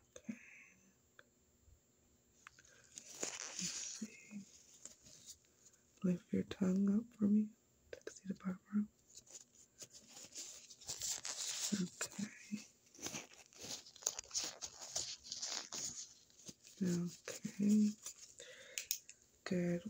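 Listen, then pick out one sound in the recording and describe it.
A young woman whispers softly close to the microphone.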